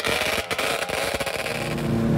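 A snowmobile speeds past over snow.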